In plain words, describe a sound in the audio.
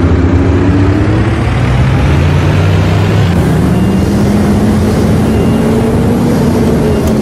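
A bus engine rumbles steadily and rises in pitch as it speeds up.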